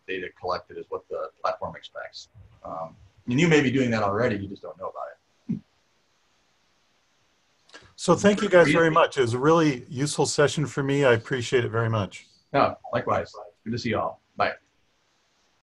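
A middle-aged man talks over an online call.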